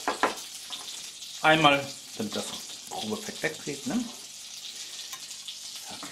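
A metal spatula scrapes and clinks against a plate.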